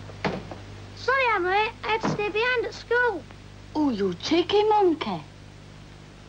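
A young boy speaks in a lively, sing-song voice close by.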